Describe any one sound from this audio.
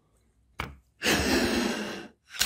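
A hand brushes against the microphone with a loud rustle.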